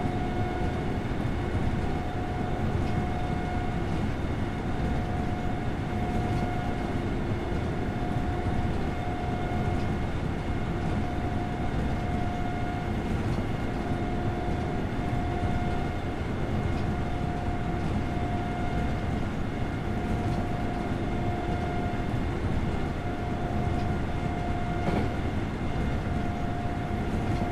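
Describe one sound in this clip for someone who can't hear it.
A train's electric motor hums steadily as it rolls along the track.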